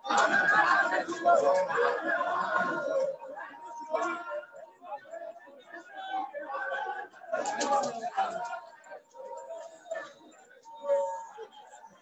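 Many men and women shout and cheer close by.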